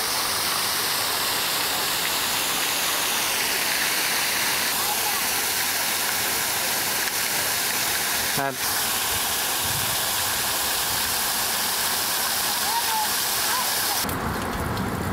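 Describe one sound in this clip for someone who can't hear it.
A large fountain splashes steadily.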